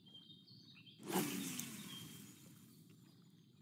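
A fishing rod swishes as a line is cast out.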